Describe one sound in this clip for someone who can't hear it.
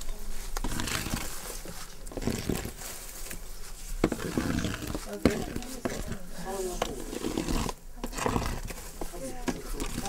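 Glowing coals crackle softly.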